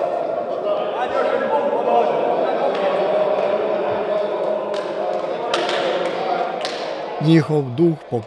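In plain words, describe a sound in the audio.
Several men chatter and call out in an echoing hall.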